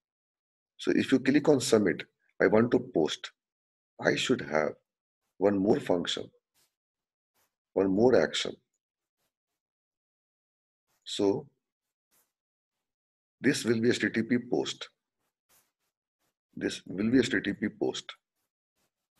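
A man speaks calmly through a microphone, explaining in short bursts with pauses.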